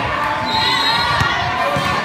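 A volleyball bounces on a hard court.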